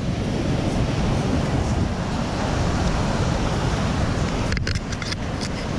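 Waves wash up onto the shore.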